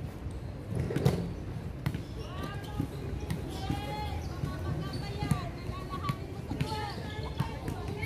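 A volleyball is struck by hand outdoors.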